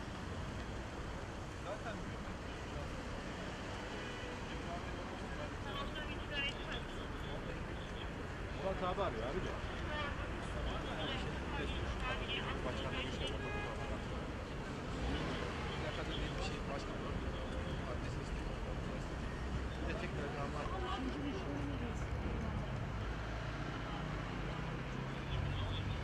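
Traffic rumbles steadily outdoors nearby.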